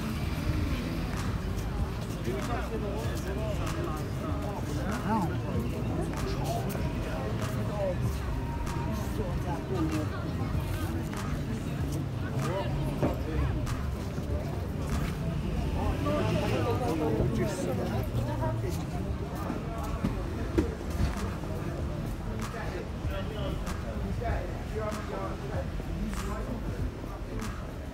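Footsteps patter on a pavement.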